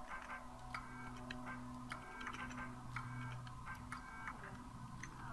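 A computer terminal gives short electronic beeps, again and again.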